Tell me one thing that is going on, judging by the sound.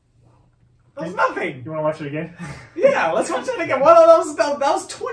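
Another young man laughs close by.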